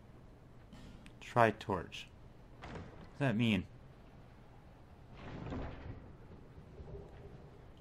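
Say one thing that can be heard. A heavy wooden chest creaks open.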